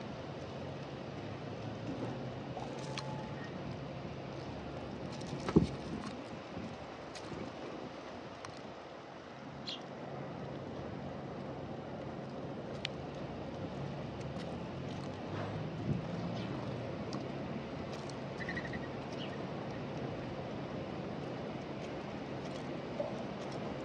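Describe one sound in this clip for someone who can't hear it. Doves peck at seeds close by, with soft taps and clicks.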